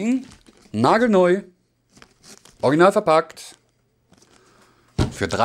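Cardboard packaging rustles in a man's hands.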